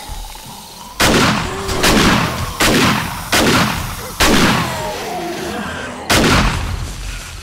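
A rifle fires loud shots in quick bursts.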